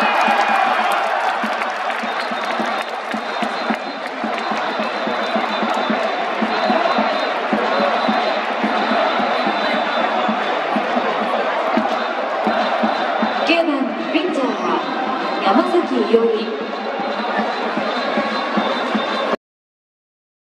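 A large crowd cheers and chants loudly in a stadium.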